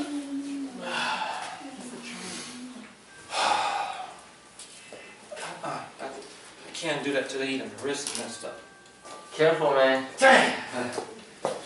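A man talks calmly, close by.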